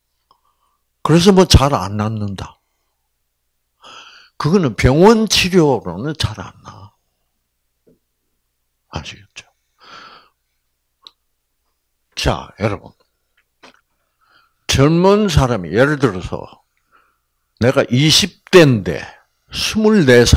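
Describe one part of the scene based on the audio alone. An elderly man speaks calmly into a microphone, with pauses, over a loudspeaker.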